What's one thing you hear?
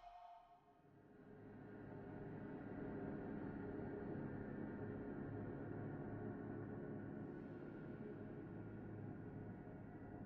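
Low, steady music hums.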